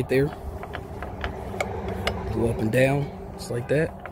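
A metal gate latch clicks and rattles.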